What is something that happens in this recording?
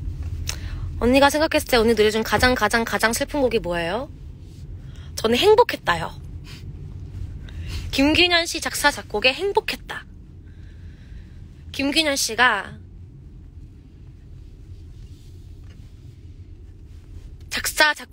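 A young woman speaks close to a microphone, in short bursts with pauses.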